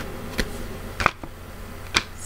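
A playing card is laid down on a table with a soft tap.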